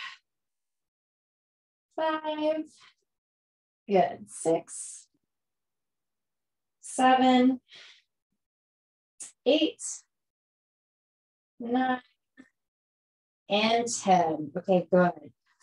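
A woman speaks calmly into a close microphone, in short phrases with pauses.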